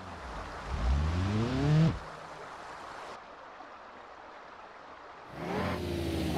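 Water splashes around a car wading through it.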